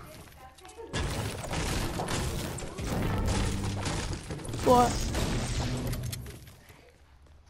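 A pickaxe strikes a wall with repeated heavy thuds.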